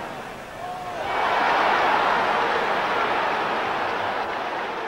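A large crowd roars and cheers in a stadium.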